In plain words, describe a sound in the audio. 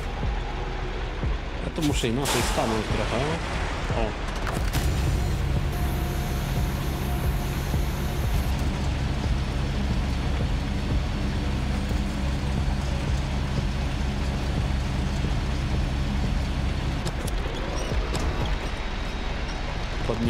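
A heavy truck engine rumbles steadily.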